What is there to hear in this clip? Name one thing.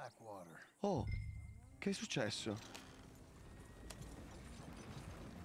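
A horse-drawn wagon rolls along with clopping hooves and creaking wheels.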